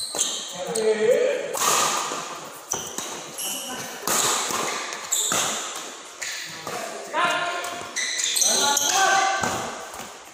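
Badminton rackets strike a shuttlecock in an echoing indoor hall.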